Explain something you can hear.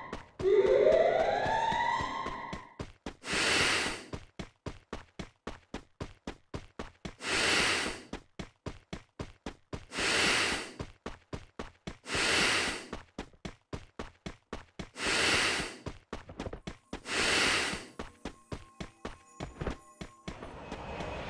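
Quick, even footsteps run over the ground.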